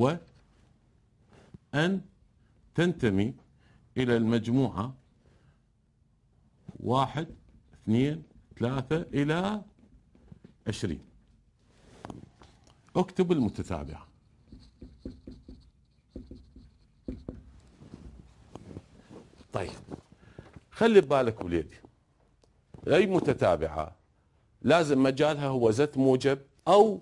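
A middle-aged man lectures calmly through a microphone, in short phrases with pauses.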